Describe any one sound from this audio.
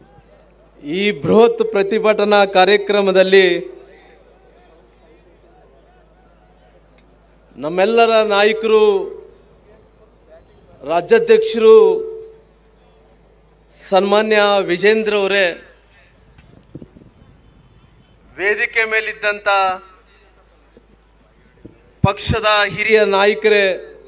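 A man speaks forcefully into a microphone over loudspeakers, in short bursts with pauses.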